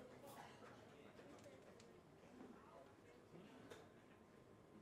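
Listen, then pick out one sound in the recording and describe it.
Cymbals crash on a drum kit.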